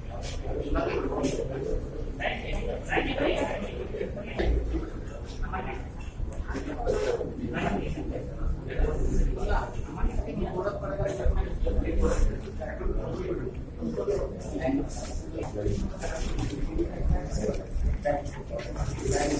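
A crowd of men and women talk over each other, close by.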